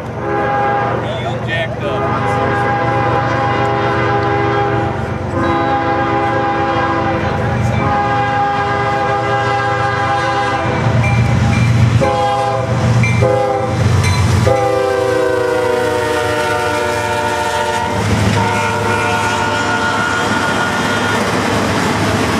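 A train horn blares in long loud blasts as the train approaches, then drops in pitch as it passes.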